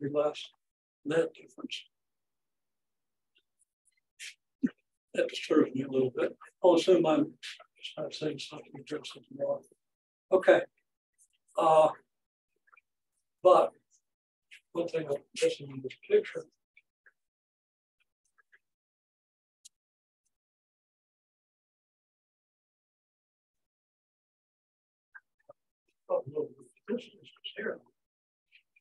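An elderly man speaks calmly, as if lecturing.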